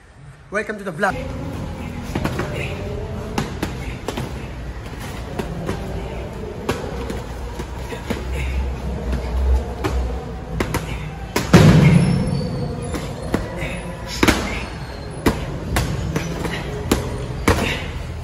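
Boxing gloves thump against punch mitts.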